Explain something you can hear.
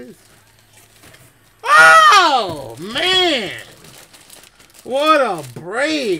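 A plastic card wrapper crinkles and tears.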